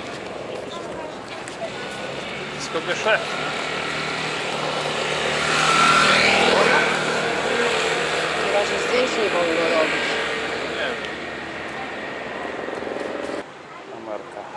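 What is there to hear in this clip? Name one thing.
Men and women chatter in a busy crowd outdoors.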